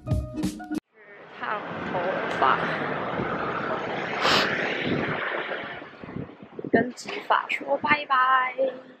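A young woman talks casually, close by, outdoors.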